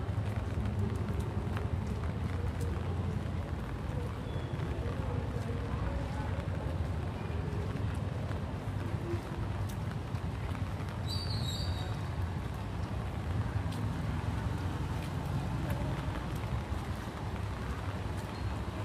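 Low traffic rumbles steadily nearby.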